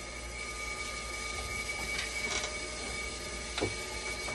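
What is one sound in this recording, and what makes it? Plastic parts click and knock as hands work inside a dialysis machine.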